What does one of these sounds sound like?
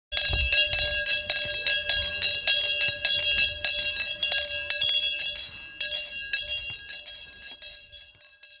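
A handbell rings rapidly and loudly, then slowly fades.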